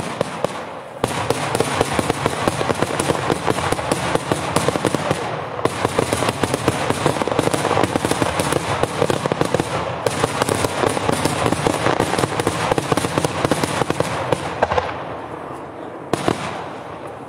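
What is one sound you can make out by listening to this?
Fireworks crackle and pop rapidly overhead in the open air.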